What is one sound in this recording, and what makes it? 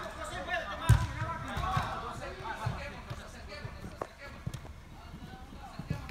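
Men shout and call out to each other during a game, in a large echoing hall.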